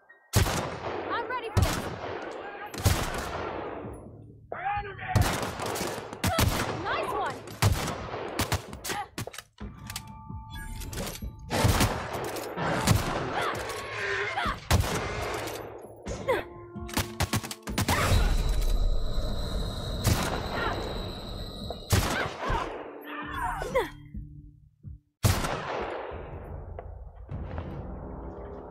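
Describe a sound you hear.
Rifle shots crack loudly, one after another, each followed by a short echo.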